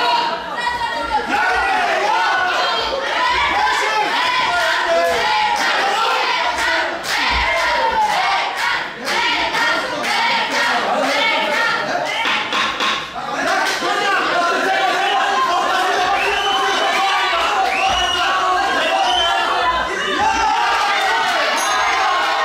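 Gloves thud on bodies as boxers punch.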